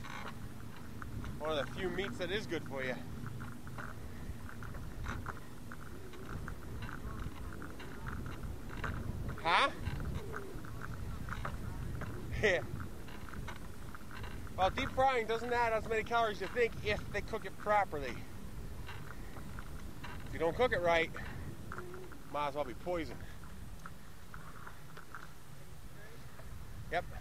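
Bicycle tyres rumble steadily along a concrete path.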